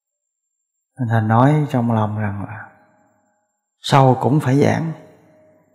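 A middle-aged man speaks calmly and slowly into a close microphone.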